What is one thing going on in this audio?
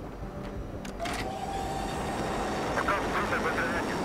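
A heavy metal platform rumbles as it descends.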